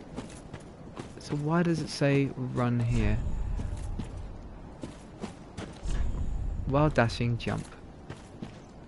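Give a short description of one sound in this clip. Armoured footsteps crunch and clank on rough ground.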